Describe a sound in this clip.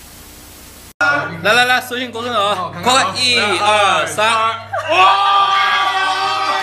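A young woman talks and laughs excitedly among a group of people.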